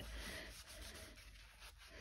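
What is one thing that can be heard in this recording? A paper towel dabs lightly on a surface.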